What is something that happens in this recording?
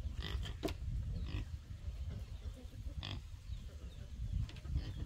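Pigs grunt and snuffle nearby.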